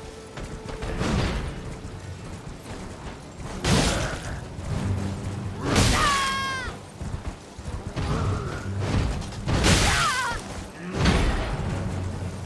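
Swords clash and slash in heavy blows.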